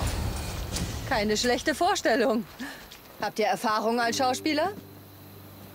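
A young woman speaks calmly, with a hint of amusement.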